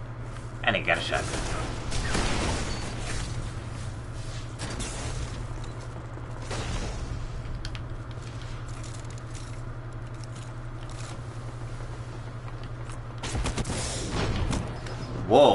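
Gunfire from a video game rattles in bursts.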